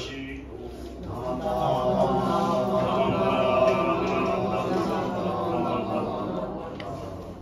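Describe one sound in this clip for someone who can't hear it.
An elderly man chants in a low, steady drone.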